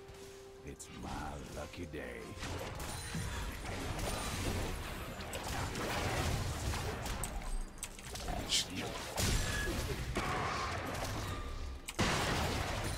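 Magic blasts and weapon hits crackle and thump in a fast fantasy battle.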